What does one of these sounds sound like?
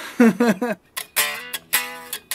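An electric guitar is strummed briefly.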